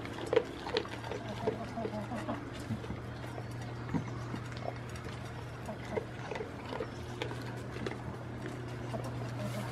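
A goat eats from a metal bowl with crunching and clinking.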